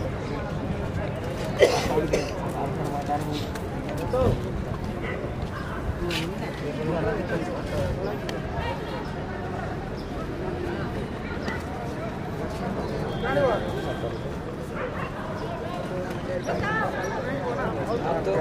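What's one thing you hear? A crowd of spectators chatters and calls out in the distance.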